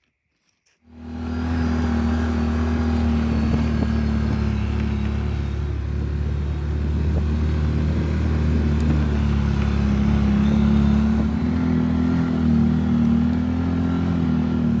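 An off-road vehicle's engine drones steadily while driving.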